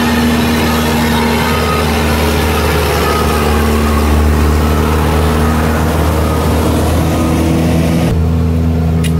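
A road roller's diesel engine rumbles steadily close by.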